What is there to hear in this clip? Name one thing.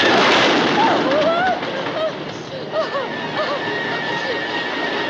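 Young men and women scream and shriek on a ride.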